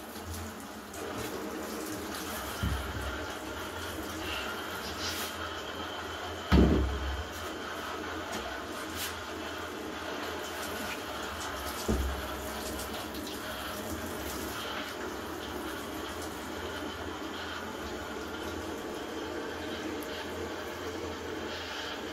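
Water sprays from a shower head and splashes.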